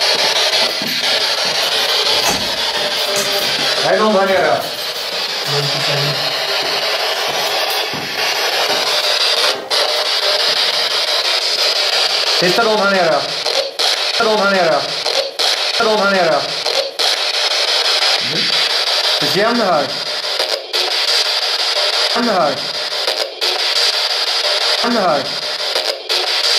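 A handheld radio hisses with steady static.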